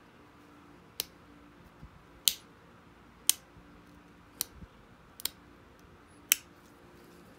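A pressure flaker clicks sharply as small flakes snap off stone.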